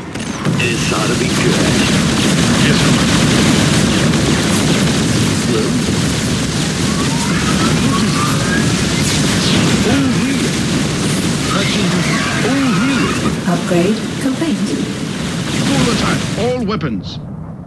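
Guns fire rapidly in a loud, chaotic battle.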